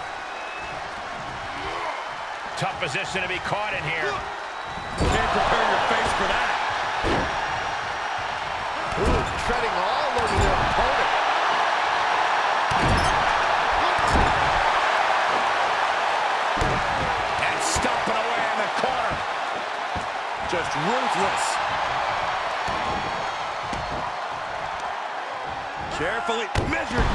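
A crowd cheers steadily in a large arena.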